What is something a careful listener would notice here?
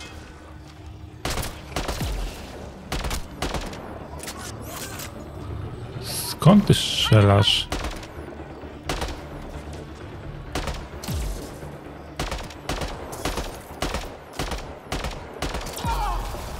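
Rifle shots crack one after another.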